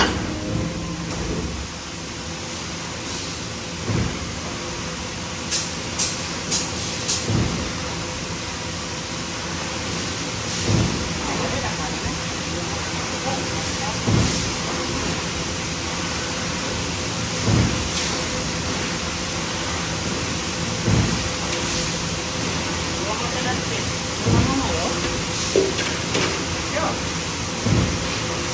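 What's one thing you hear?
Heavy machinery hums and rumbles steadily.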